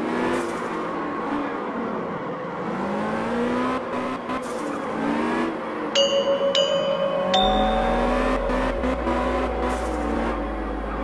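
A small car engine revs up and down as the car drifts in tight loops.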